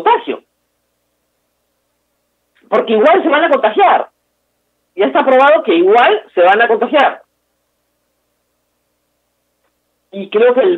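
A middle-aged woman speaks with animation over an online call, in bursts with long pauses.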